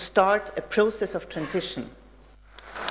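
A woman speaks into a microphone in a large hall.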